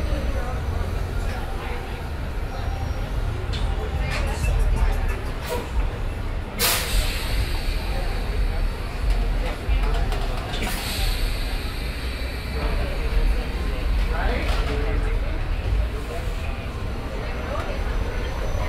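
Men and women chatter at outdoor tables nearby.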